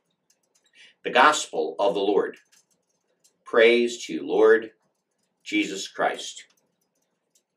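A man speaks calmly and clearly into a nearby microphone, in short phrases.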